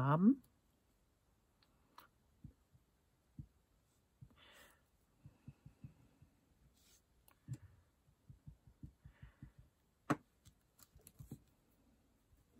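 A marker taps and scratches on paper.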